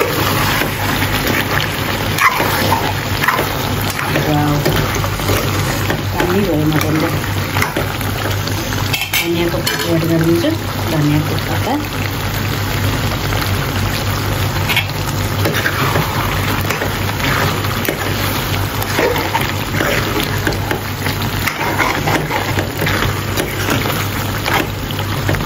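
A metal spoon scrapes and stirs food in a pan.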